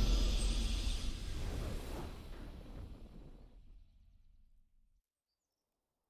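Triumphant game victory music plays and fades away.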